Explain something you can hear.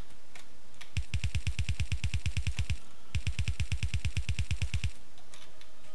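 A gun fires in fast, steady bursts.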